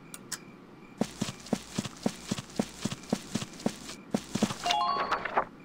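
Footsteps run quickly at a steady pace.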